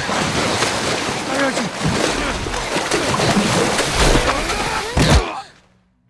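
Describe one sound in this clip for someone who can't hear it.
Water splashes and churns heavily.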